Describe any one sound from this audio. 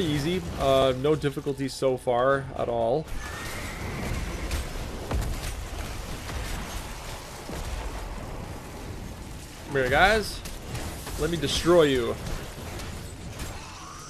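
Battle sound effects clash and crackle as fighters trade blows.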